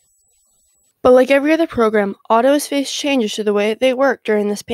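A young woman speaks clearly and calmly.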